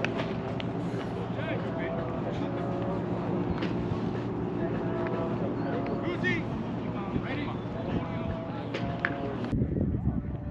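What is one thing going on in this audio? Men and women chat nearby outdoors.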